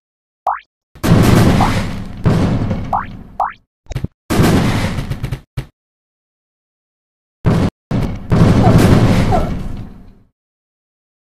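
Cartoon bombs explode with loud, rumbling booms.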